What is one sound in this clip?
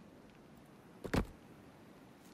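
A heavy wooden log thuds into place.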